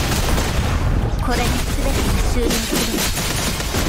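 Energy blasts crackle and burst.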